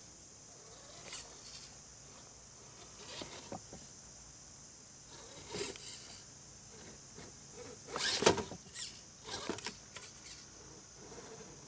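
Rubber tyres scrape and knock against rocks.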